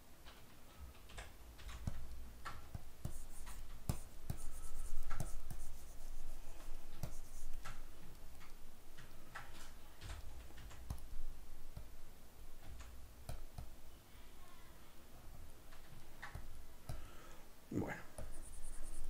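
A man talks calmly and steadily, close to a microphone.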